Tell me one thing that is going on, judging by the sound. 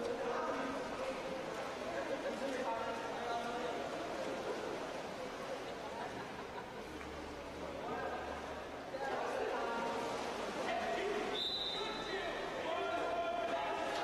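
Young players shout to each other across the water.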